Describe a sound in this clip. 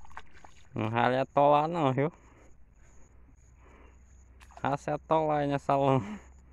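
Feet squelch through wet mud.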